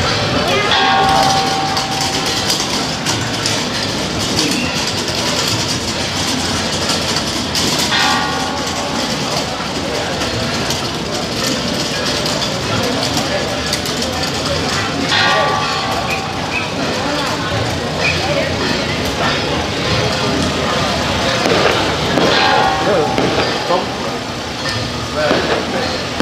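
A crowd murmurs and chatters outdoors at night.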